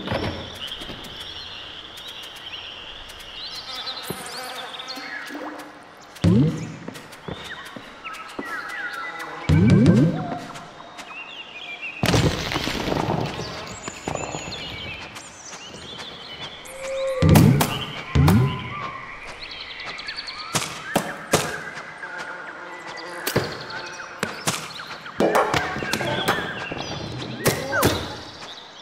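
Small creatures chirp and squeak.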